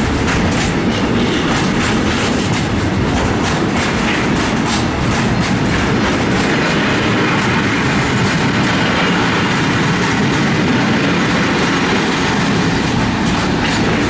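A freight train rushes past close by with a loud rumble.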